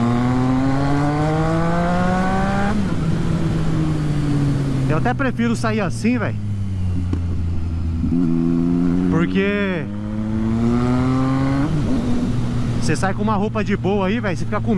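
A motorcycle engine roars and rises in pitch as it speeds up through the gears.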